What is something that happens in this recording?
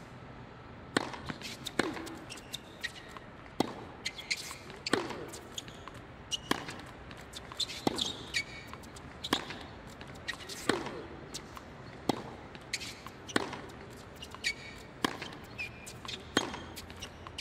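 Tennis rackets hit a ball back and forth in a steady rally.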